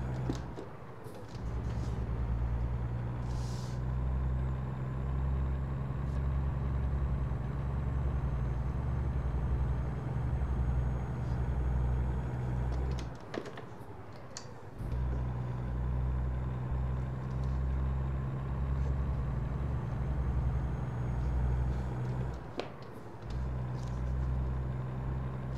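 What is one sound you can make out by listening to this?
A truck's diesel engine drones steadily, dropping away briefly now and then as gears change.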